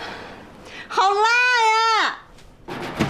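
A young woman cries out in a long, wavering, high voice nearby.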